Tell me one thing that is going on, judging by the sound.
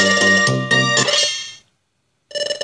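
A short musical jingle plays.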